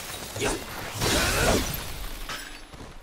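A large sword slashes into a crystal with a shattering crash.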